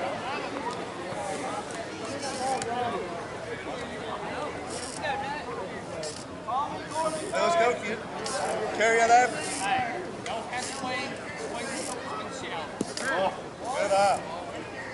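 Several men talk and call out outdoors, some distance away.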